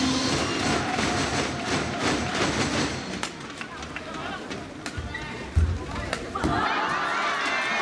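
Shuttlecock hits from rackets pop sharply.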